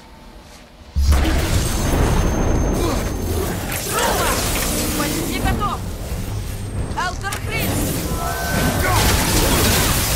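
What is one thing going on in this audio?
Magic bursts crackle and boom.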